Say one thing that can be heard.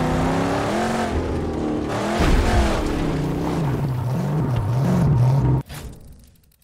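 Tyres crunch over gravel and dirt.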